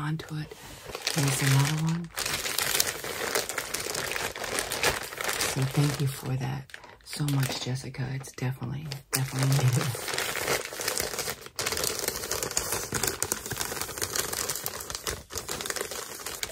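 A plastic mailer bag crinkles and rustles.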